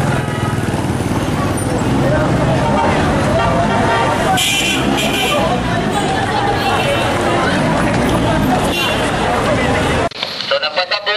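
A crowd of men and women chatter and call out outdoors.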